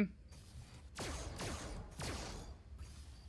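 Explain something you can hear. A toy laser blaster fires with sharp zaps.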